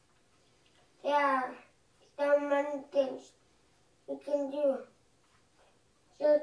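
A young boy reads aloud slowly and haltingly, close by.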